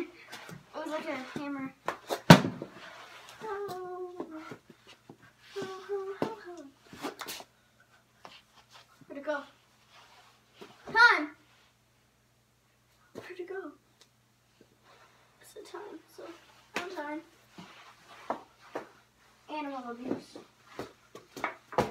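A young boy talks and squeals playfully close by.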